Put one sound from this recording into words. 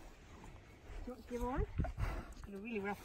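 A woman speaks softly to a cow.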